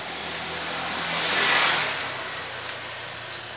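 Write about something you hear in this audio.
A motor scooter passes by close.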